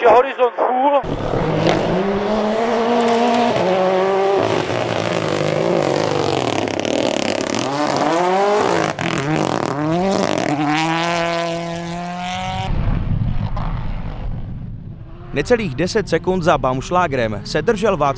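A rally car engine roars and revs as the car speeds past.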